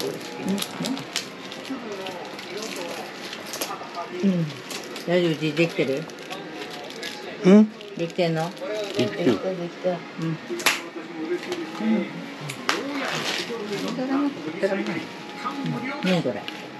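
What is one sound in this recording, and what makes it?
Chopsticks click against plastic food containers.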